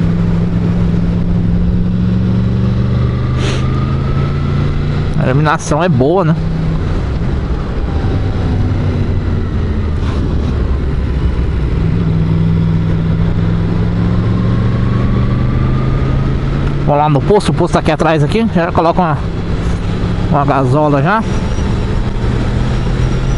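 A motorcycle engine hums and revs as it accelerates and slows.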